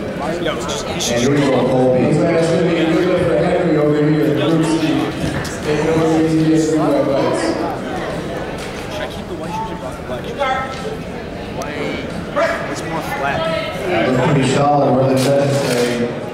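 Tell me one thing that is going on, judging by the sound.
A crowd of men shout encouragement loudly in a large echoing gym.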